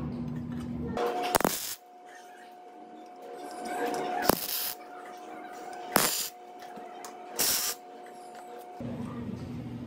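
An electric welder crackles and buzzes in short bursts.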